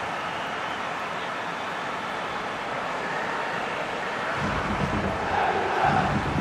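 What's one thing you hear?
A large stadium crowd roars and cheers steadily, swelling louder toward the end.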